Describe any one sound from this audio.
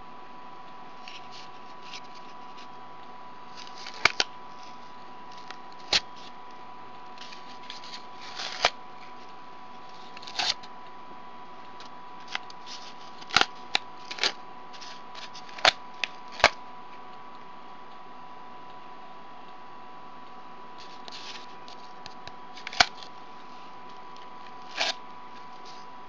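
Cardboard rustles and taps as hands handle it.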